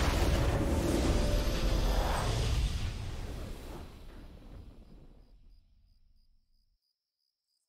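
A triumphant fanfare swells and fades away.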